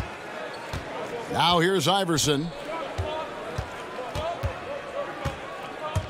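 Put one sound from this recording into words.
A basketball bounces repeatedly on a hardwood court.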